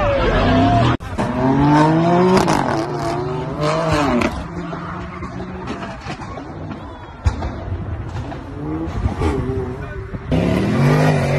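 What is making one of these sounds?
A car engine roars as it speeds past.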